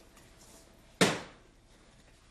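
A door is knocked on sharply.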